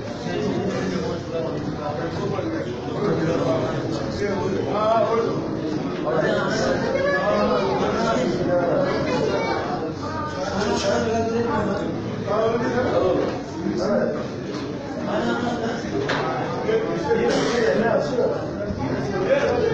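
Footsteps shuffle as a crowd of men walks past.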